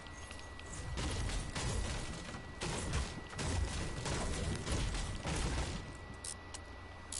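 A pickaxe strikes wooden furniture with sharp knocks.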